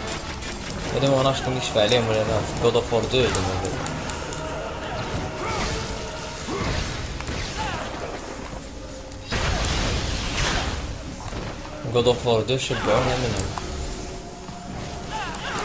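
Blows strike enemies with heavy impacts.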